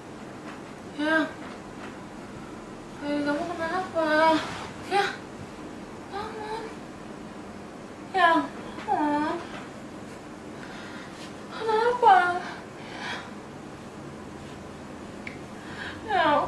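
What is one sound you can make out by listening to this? A young woman speaks softly and gently close by.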